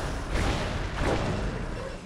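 A video game's electric warping sound crackles briefly.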